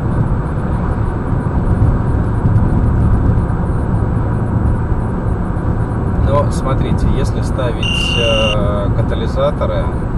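A car drives steadily along a road, its engine and tyres rumbling low inside the cabin.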